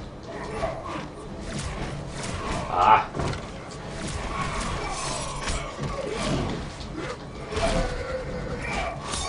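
Punches and kicks land with sharp smacks in a fighting game.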